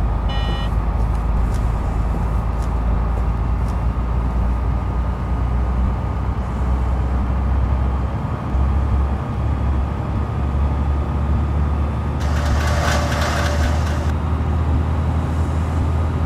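A bus engine hums low and steady as the bus drives along.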